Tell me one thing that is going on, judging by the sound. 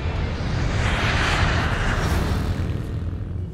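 A jet airliner's engines roar loudly.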